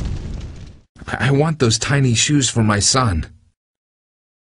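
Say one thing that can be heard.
A man speaks excitedly.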